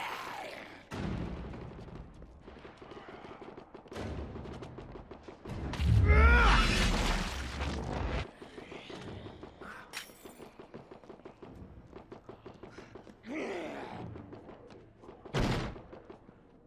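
Heavy blows thud and splatter against bodies.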